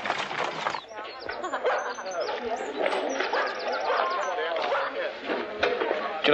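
A crowd murmurs and chatters in a busy outdoor market.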